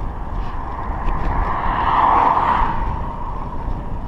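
A car approaches and swishes past.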